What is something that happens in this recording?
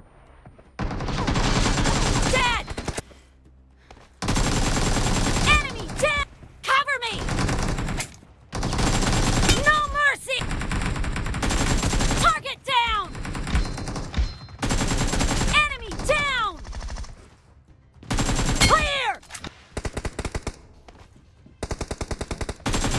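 Rapid bursts of automatic rifle fire crack loudly, stopping and starting.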